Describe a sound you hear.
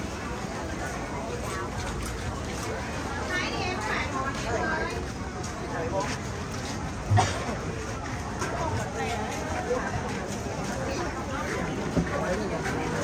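A crowd of men and women chatters close around.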